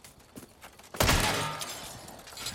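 A gunshot bangs once.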